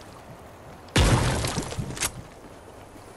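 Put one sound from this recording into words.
Wooden planks clatter into place with a loud knock.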